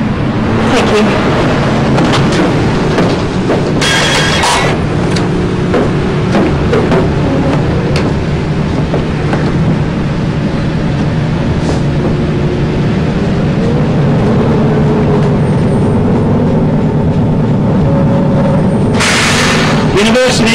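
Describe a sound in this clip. A bus engine hums steadily while the bus drives along.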